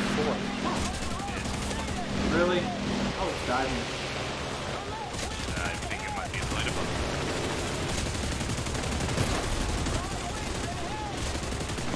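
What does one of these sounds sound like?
Explosions boom and burst repeatedly.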